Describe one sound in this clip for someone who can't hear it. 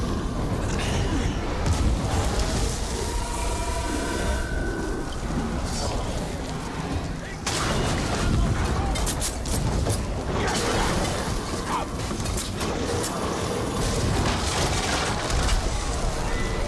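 Fires crackle and roar across a battlefield.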